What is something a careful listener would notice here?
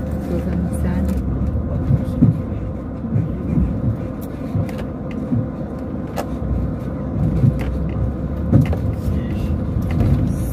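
Tyres rumble and thump over a rough, potholed road.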